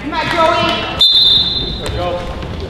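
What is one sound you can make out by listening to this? A referee blows a short, shrill whistle in an echoing gym.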